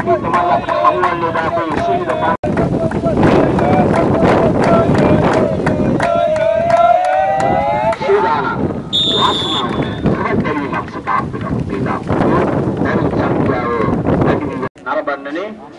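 Young men shout and cheer loudly outdoors.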